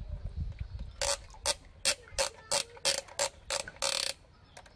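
A plastic toy crane clicks as it is handled.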